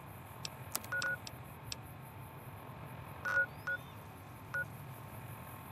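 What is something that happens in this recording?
A handheld device gives short electronic beeps.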